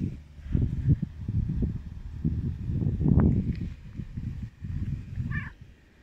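A cat purrs loudly up close.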